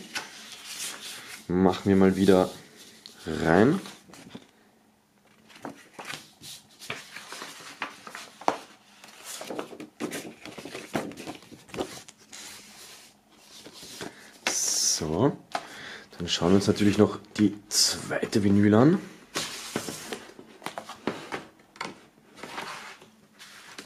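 A paper record sleeve rustles and slides as it is handled.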